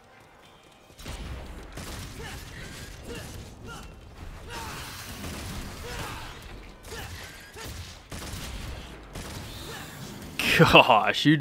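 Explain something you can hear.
Game combat sounds clash and whoosh.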